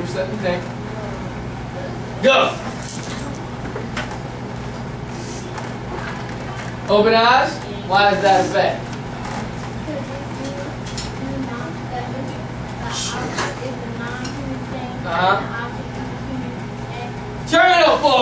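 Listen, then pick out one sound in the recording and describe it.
A man speaks with animation to a class.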